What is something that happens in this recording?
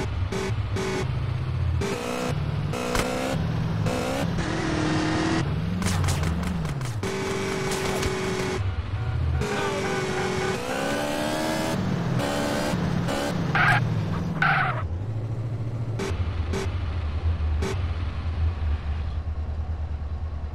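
A motorcycle engine hums and revs.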